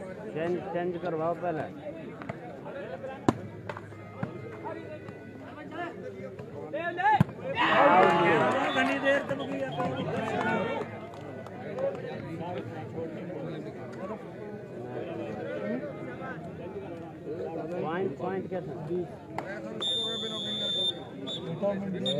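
A crowd of young men shout and call out outdoors.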